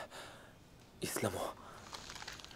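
A young man groans in pain close by.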